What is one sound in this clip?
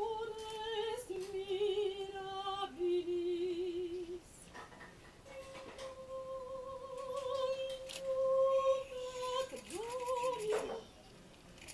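A crowd sings a slow hymn with long held notes.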